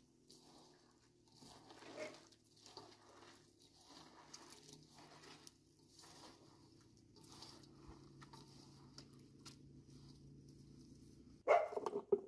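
Crisp shredded cabbage crunches and squelches as hands knead it.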